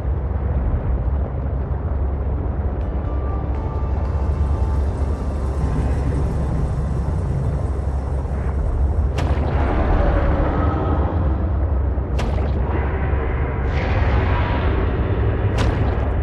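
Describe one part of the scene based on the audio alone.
A small submarine's engine hums with a low, steady rumble underwater.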